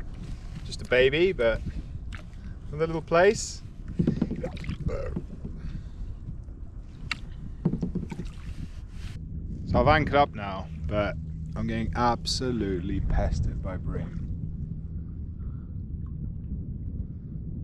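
Wind blows steadily outdoors over open water.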